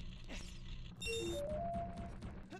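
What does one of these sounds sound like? A bright, short chime rings out.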